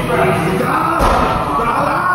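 A ball thuds against a wall.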